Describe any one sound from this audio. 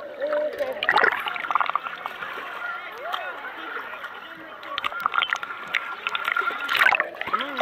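Water splashes and laps at the surface close by.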